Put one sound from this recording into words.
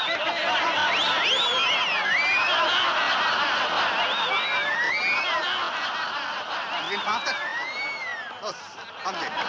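A group of men laugh and cheer loudly outdoors.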